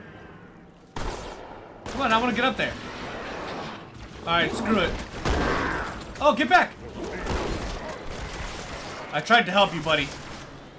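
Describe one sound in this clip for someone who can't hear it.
A shotgun fires with loud blasts.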